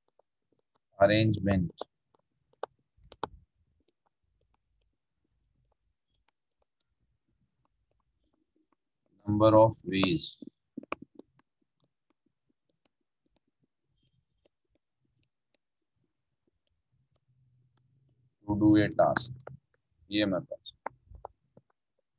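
A man speaks calmly into a microphone, in short bursts with long pauses.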